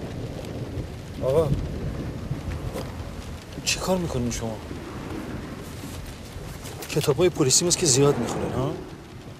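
A middle-aged man speaks quietly nearby.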